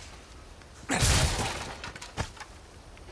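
A blast booms close by and debris scatters.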